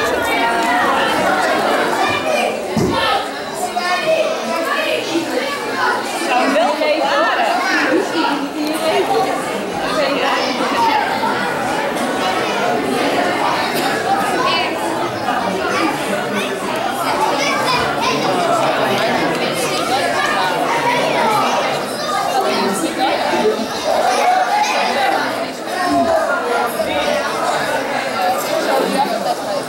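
Many children chatter and call out all around in a large echoing hall.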